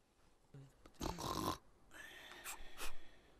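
A man yawns loudly.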